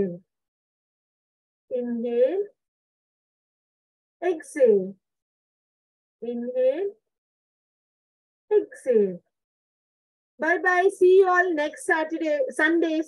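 A woman speaks in short, drawn-out phrases with pauses, heard through an online call.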